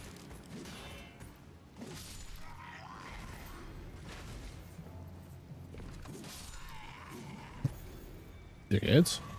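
Swords clash and swish in a game fight.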